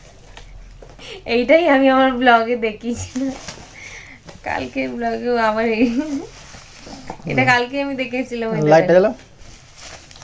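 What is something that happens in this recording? Bubble wrap crinkles as hands unwrap it.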